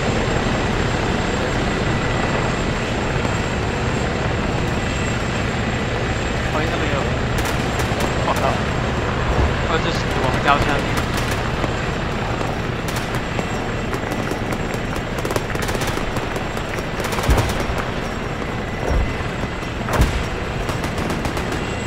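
Boots thud quickly on hard ground as a soldier runs.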